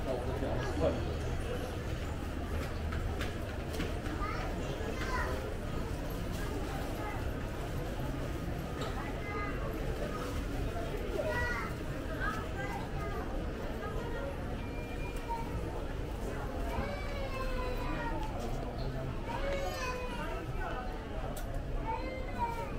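Men and women murmur and chatter indistinctly in a large echoing indoor space.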